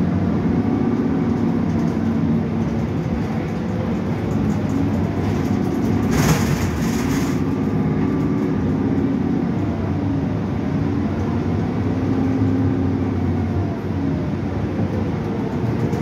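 A bus rattles and creaks as it drives.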